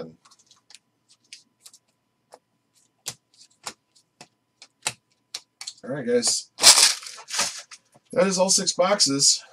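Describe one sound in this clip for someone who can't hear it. Trading cards flick and rustle crisply between fingers.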